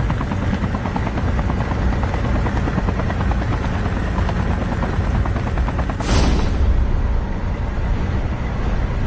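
Helicopter rotor blades chop loudly and steadily.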